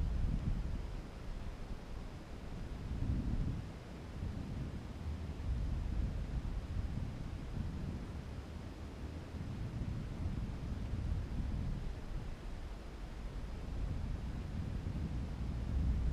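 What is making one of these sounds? Wind rumbles and buffets steadily against the microphone.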